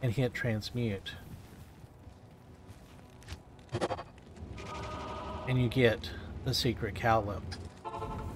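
A man talks with animation into a close microphone, with pauses.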